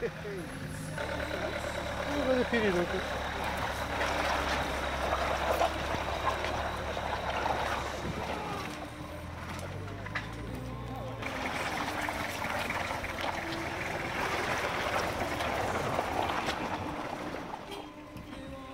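Tyres churn and spin in thick mud.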